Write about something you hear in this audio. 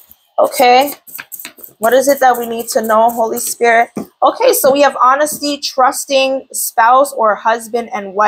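Cards are shuffled by hand with soft flicking and slapping.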